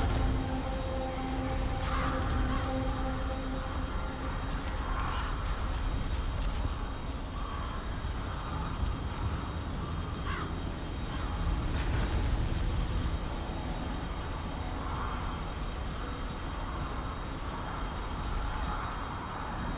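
Footsteps crunch quickly through dry grass and brush.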